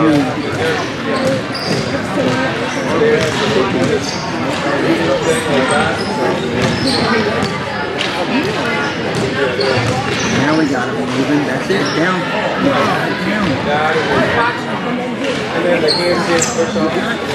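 Many voices chatter and call out across a large echoing hall.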